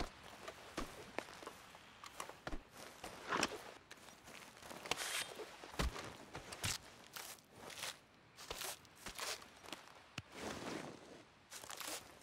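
A knife slices and tears wetly through an animal carcass.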